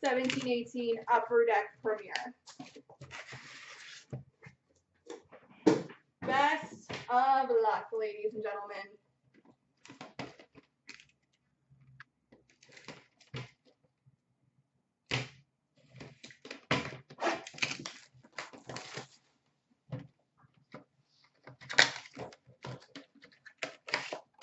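Small cardboard boxes tap and rustle as they are handled and set down.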